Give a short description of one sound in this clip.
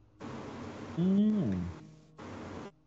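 A second man speaks through a microphone on an online call.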